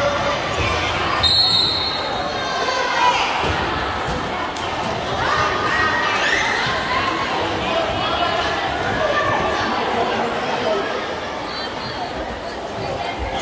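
A crowd of spectators chatters and shouts in a large echoing gym.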